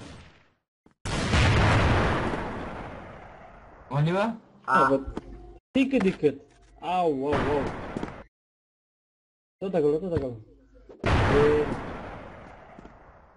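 A rifle fires loud shots that echo and slowly fade.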